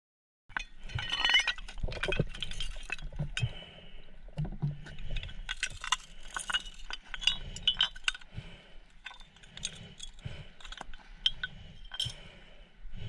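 Glass bottles clink against each other and on stone.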